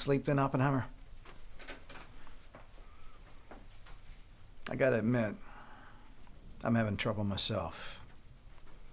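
A middle-aged man speaks in short, quiet, serious phrases close by.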